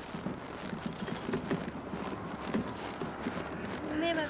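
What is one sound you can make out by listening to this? A hand cart's wheels rattle and roll over packed snow.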